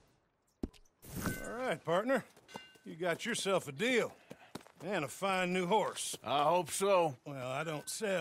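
A man speaks calmly and cheerfully, close by.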